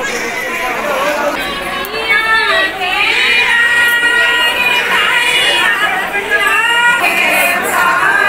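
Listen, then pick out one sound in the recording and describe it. A baby cries loudly up close.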